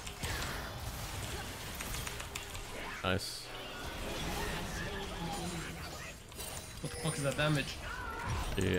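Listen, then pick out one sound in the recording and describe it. Magic spells crackle and whoosh in a fast video game battle.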